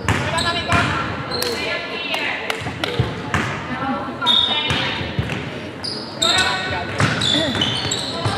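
Young players shout and call out in a large echoing hall.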